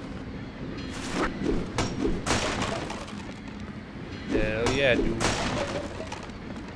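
A crowbar strikes and splinters a wooden crate.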